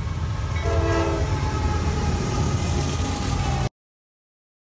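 A diesel locomotive rumbles loudly past up close.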